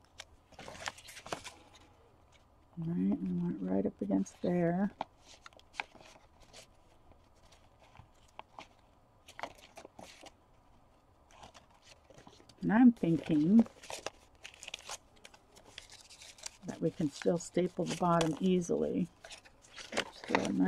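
Paper rustles and crinkles as it is handled up close.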